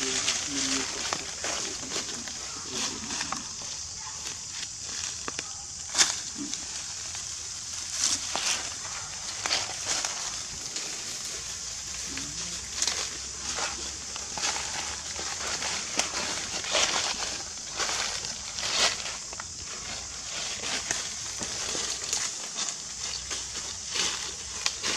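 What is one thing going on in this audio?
Dry leaves rustle and crackle as small monkeys move about on the ground.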